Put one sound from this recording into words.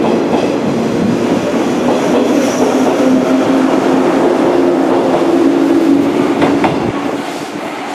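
A train rushes past close by with a loud rumbling roar.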